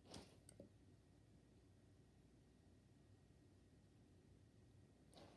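A dog sniffs softly.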